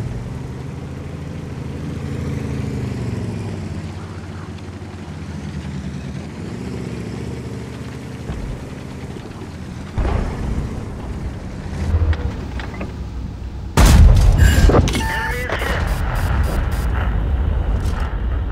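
A tank engine rumbles and whines steadily.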